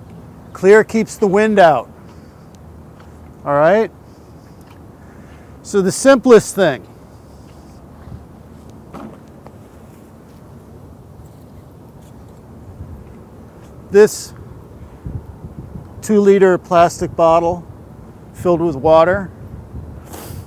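An older man speaks calmly outdoors, with pauses.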